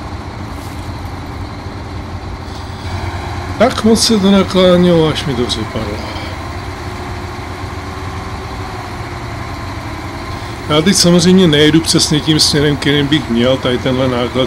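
A heavy truck engine rumbles steadily as the truck drives.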